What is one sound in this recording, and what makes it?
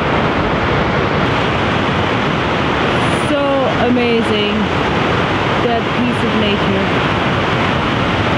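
A large waterfall roars steadily outdoors.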